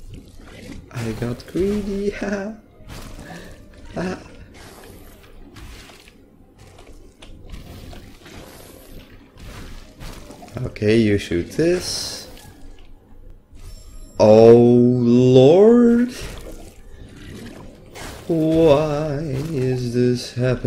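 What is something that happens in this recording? A young man talks with animation into a microphone, close by.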